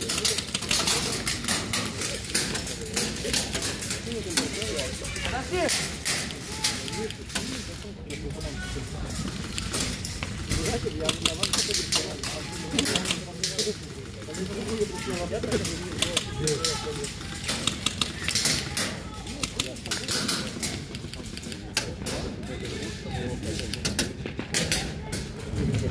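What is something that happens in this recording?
Paintball markers fire in quick bursts of sharp pops.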